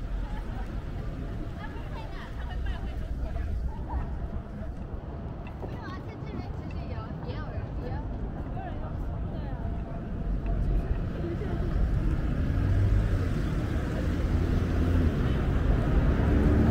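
Footsteps tap on a paved pavement outdoors.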